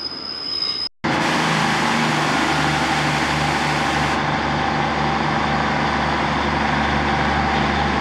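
A diesel train engine idles nearby with a steady throb.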